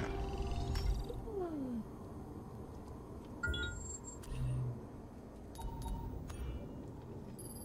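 Short electronic beeps and chimes sound.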